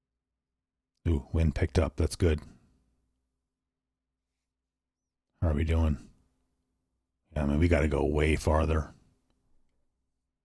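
A man speaks calmly and closely into a microphone, in short bursts.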